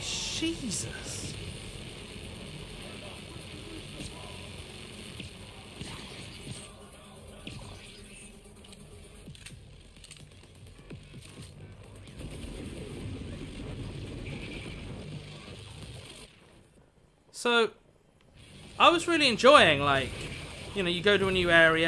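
An electric weapon crackles and zaps.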